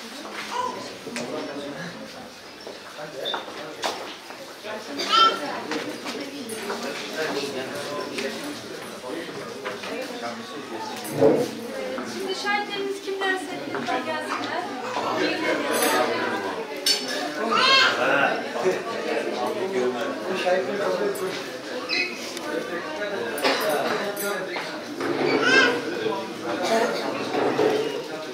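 Guests murmur and chat nearby.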